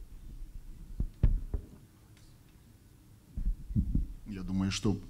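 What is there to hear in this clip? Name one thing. A microphone thumps and knocks as it is handled.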